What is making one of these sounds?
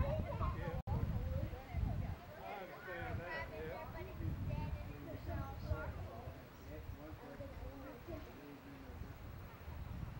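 Children talk and call out nearby.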